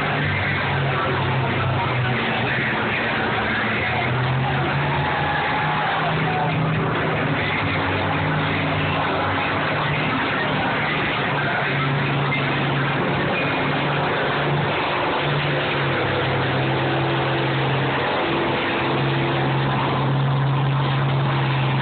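Metal crunches as combines ram into each other.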